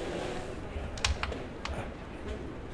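A carrom striker clicks sharply against wooden coins on a board.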